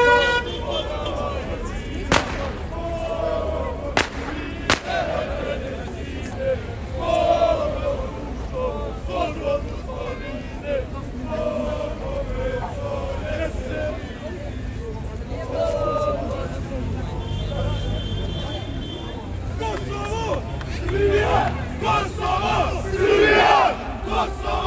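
A crowd of men and women talks and shouts outdoors.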